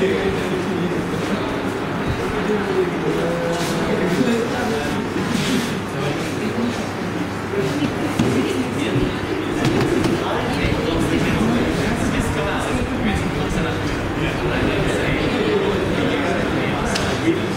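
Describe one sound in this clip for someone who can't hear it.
Many men and women chatter at once in a room.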